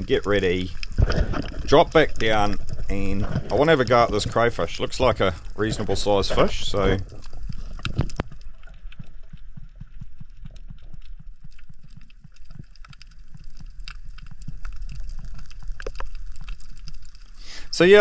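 Water swirls and crackles softly underwater.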